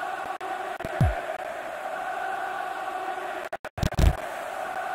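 A ball is kicked with a dull thump.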